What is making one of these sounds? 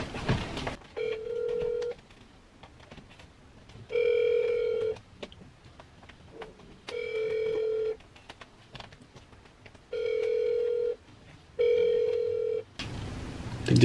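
A phone rings repeatedly through its speaker.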